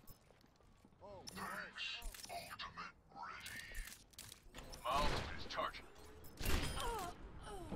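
A rifle fires sharp, echoing shots.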